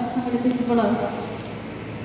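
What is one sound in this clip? A woman speaks through a microphone over loudspeakers.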